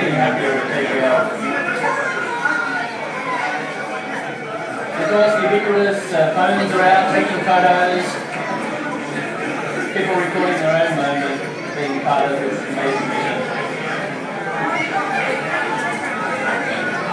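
A crowd cheers and talks excitedly through loudspeakers.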